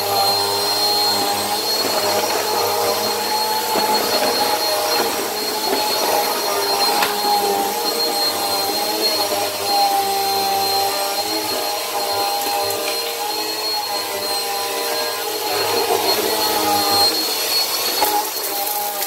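A vacuum cleaner motor whines steadily close by.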